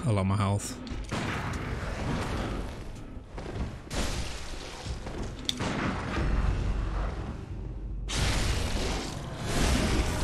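Blades clash and strike in a fight.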